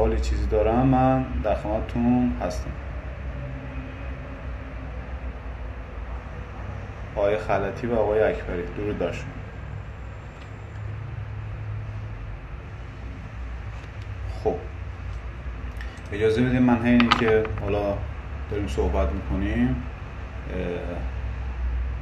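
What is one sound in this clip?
A man speaks calmly and close up, in short bursts with pauses.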